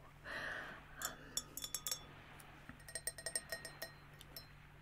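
Fingernails tap and click on a metal goblet.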